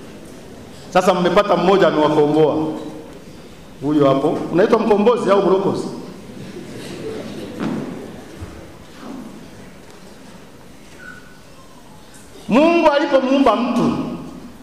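A man speaks with animation through a microphone, in bursts with pauses.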